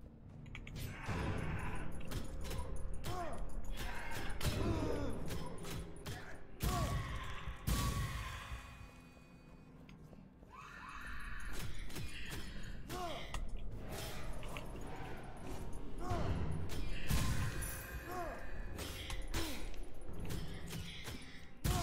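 Heavy hits thud and crack.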